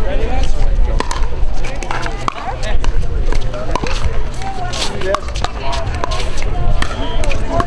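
Pickleball paddles strike a hollow plastic ball in a quick rally.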